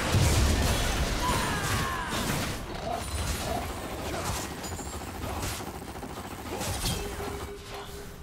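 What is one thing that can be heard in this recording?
Magic spells crackle and burst in a fast video game fight.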